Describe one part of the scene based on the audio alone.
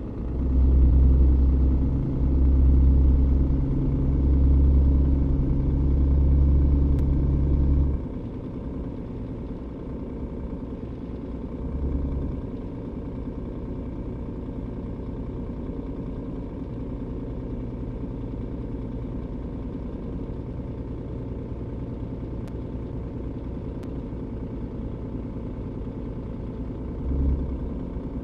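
A truck's diesel engine hums steadily and low.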